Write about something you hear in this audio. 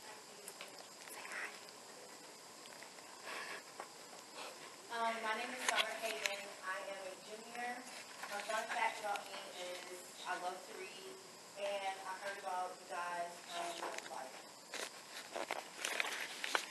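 Paper rustles in hands.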